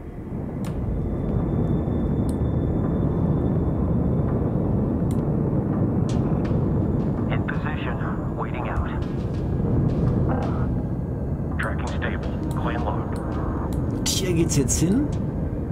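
A deep engine rumble drones steadily throughout.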